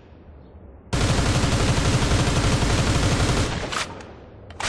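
An assault rifle fires a long full-automatic burst.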